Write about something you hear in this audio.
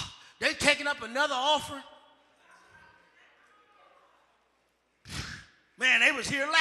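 A man preaches fervently through a microphone, his voice echoing in a large hall.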